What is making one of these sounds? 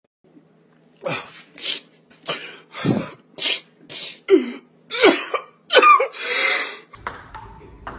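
A man sobs and wails close by.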